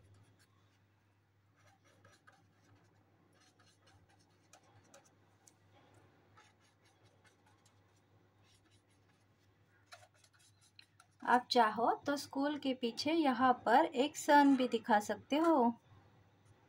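A marker pen squeaks and scratches softly on paper.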